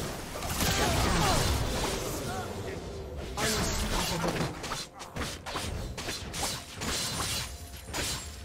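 Spell blasts and weapon hits crackle and clash in a busy battle.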